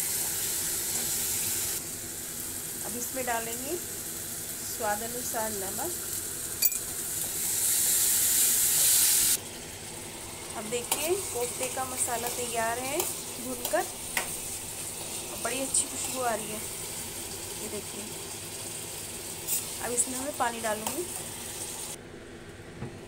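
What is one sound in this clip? Sauce sizzles and bubbles in a hot pan.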